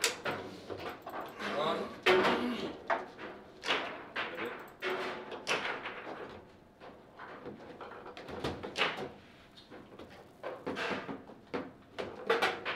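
Foosball rods clack and rattle as players spin and slide them.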